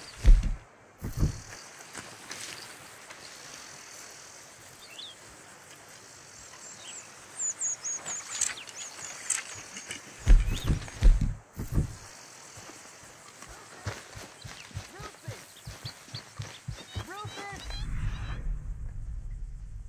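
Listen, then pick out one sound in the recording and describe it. Footsteps crunch through dry grass at a steady walking pace.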